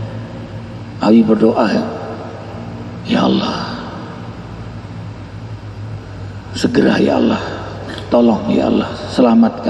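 A man speaks calmly into a microphone, heard through a loudspeaker in an echoing room, with pauses between phrases.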